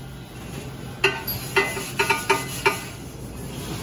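Dishes clatter and clink in a plastic rack.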